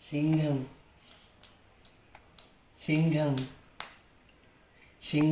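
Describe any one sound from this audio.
A baby claps small hands together.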